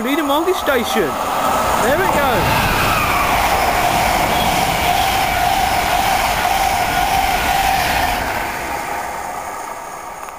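A train rushes past close by with a loud roar and a steady whine, then fades away.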